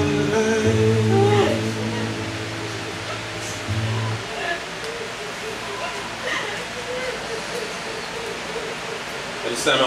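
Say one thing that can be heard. People murmur quietly in a room.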